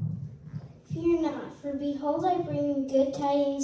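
A young girl sings into a microphone.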